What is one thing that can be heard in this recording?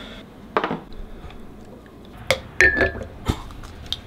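A plastic bottle clinks into a ceramic cup.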